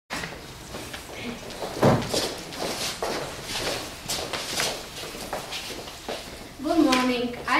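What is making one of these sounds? Footsteps shuffle on a wooden floor.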